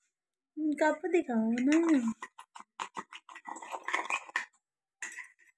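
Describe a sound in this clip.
A spoon clinks and scrapes against a ceramic cup while stirring.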